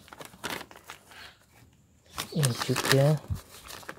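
Plastic bags rustle as soil is handled.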